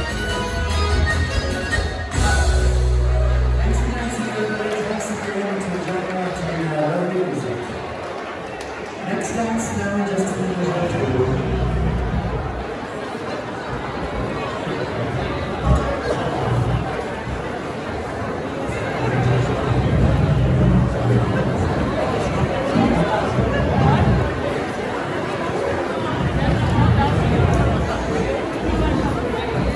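A crowd of men and women chat loudly in a large echoing hall.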